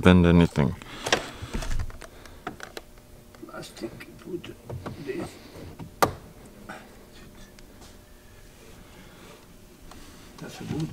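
Plastic trim clicks and knocks as it is pulled and pressed into place.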